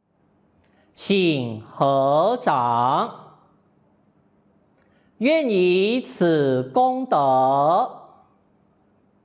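A man chants slowly in a deep, sustained voice.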